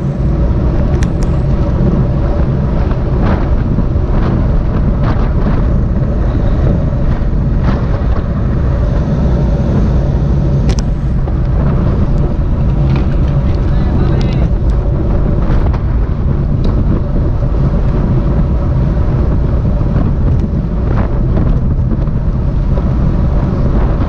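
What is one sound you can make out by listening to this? A bicycle chain and drivetrain click and tick.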